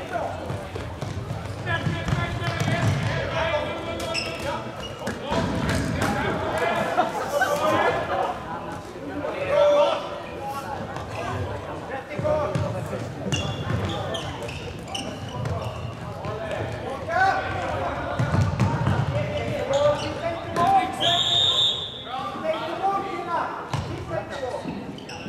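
Floorball sticks clack against a ball.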